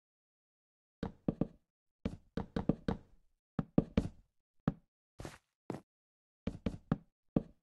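Wooden blocks knock into place one after another.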